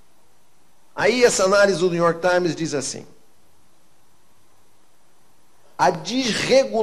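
An older man speaks with emotion into a microphone, in bursts with long pauses.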